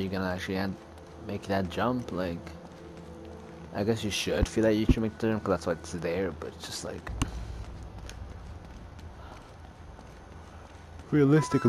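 Footsteps run on stone and climb stairs.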